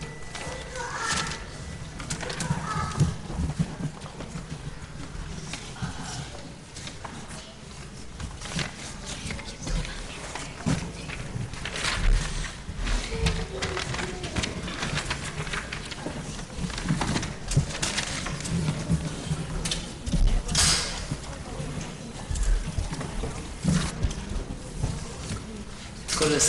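A crowd of men, women and children murmurs and talks in a large echoing hall.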